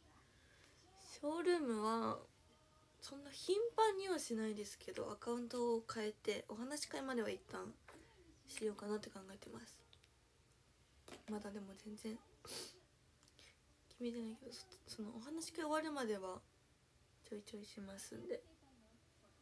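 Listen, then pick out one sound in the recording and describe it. A young woman speaks softly and tearfully, close by.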